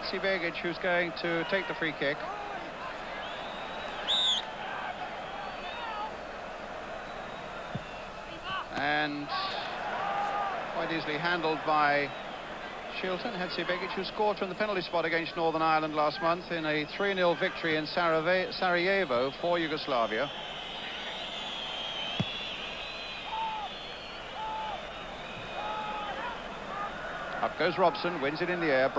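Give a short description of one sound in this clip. A large stadium crowd murmurs in the distance.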